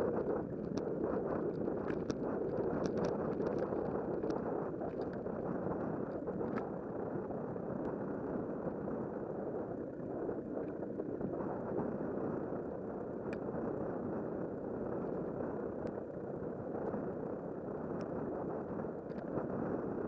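Tyres hum and rumble on a paved path.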